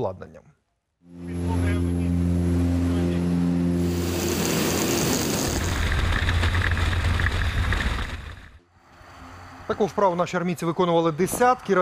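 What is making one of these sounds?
A man speaks calmly and clearly into a microphone.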